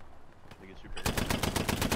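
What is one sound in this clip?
A machine gun fires a rapid burst close by.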